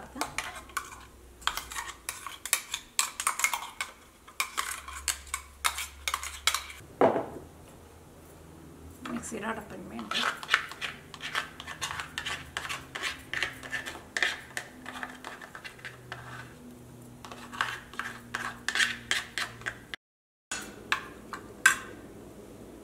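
A metal spoon scrapes and clinks against a grinder jar and its lid.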